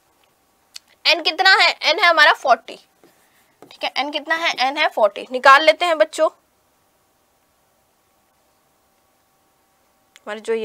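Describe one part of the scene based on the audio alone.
A young woman explains calmly into a close microphone, with pauses.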